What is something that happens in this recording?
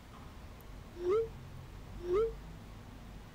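A phone makes short whooshing alert sounds.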